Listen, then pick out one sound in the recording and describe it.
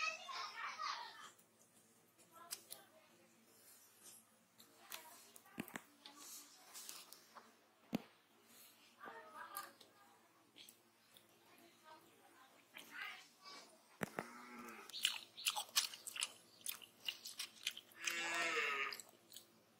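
Coconut flesh scrapes and cracks as fingers pry it from the shell.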